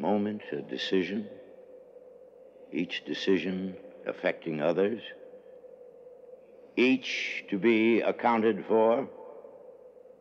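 An older man speaks in a low, earnest voice close by.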